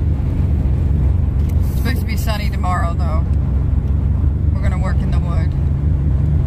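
A car's engine and tyres rumble steadily on a highway from inside the car.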